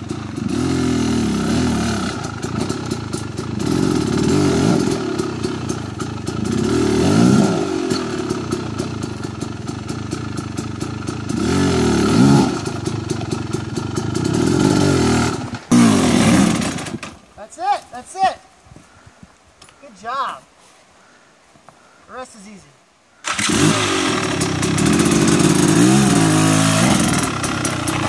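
A dirt bike engine revs hard and roars, rising and falling.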